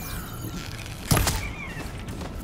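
A bowstring snaps as an arrow is loosed.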